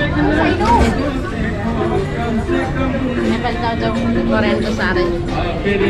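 A crowd murmurs in a busy street market.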